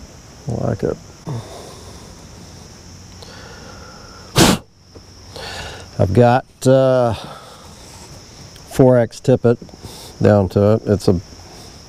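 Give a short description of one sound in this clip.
An older man talks calmly close to a microphone.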